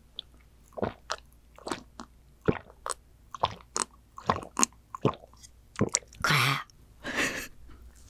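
A young woman gulps a drink close to a microphone.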